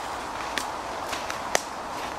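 A longbow string snaps as an arrow is released.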